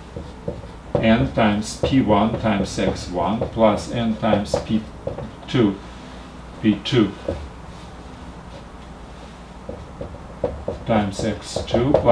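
A man speaks calmly and explains, close by.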